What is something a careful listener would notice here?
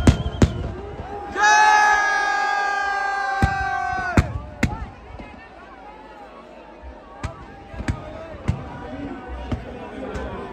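Firecrackers burst with loud sharp bangs.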